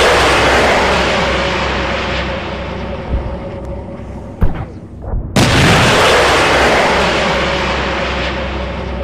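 Loud explosions boom and rumble, one after another.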